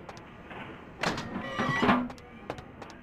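A heavy metal door swings open.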